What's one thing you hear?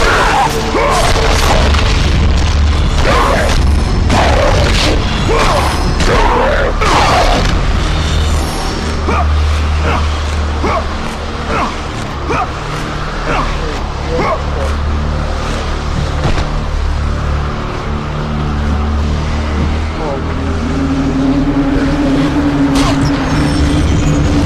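Dramatic orchestral music plays.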